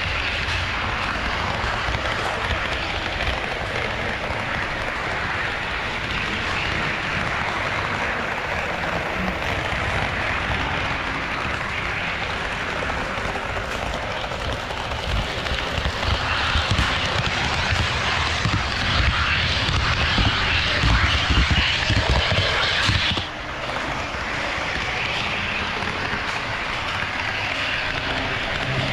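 A model train rumbles and clatters steadily along its track.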